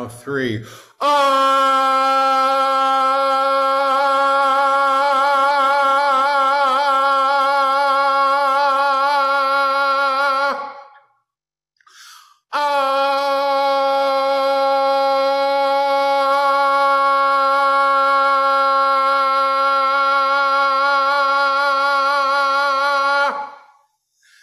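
An older man sings a long, steady, wavering tone with his mouth wide open, heard over an online call.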